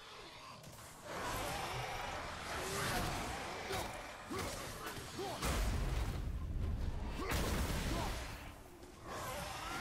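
Heavy blows thud and crash in a fight.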